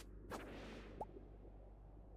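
A short chime plays as an item is picked up.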